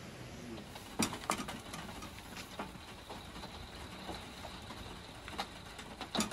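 Metal utensils clink softly.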